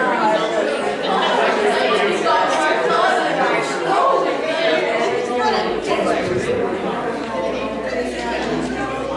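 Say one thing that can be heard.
Many men and women chatter at once in a large echoing hall.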